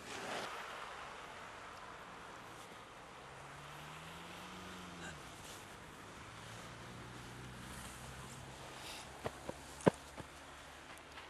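Footsteps crunch softly on packed snow.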